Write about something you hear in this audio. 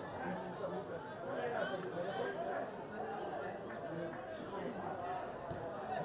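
A crowd of spectators murmurs and chatters nearby.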